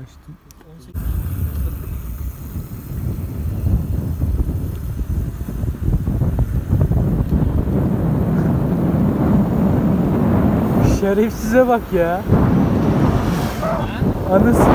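Wind rushes past a microphone while riding.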